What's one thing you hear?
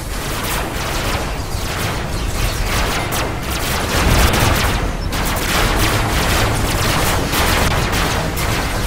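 A game vehicle's engines roar steadily.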